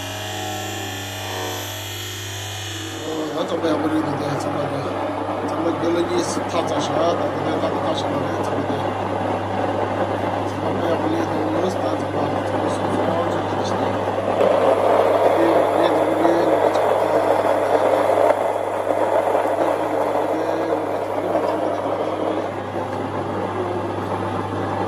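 An electric grain mill motor hums steadily.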